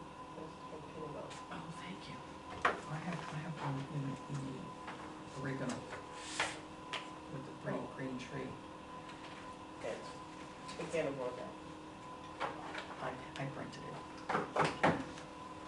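Paper rustles as pages are handled.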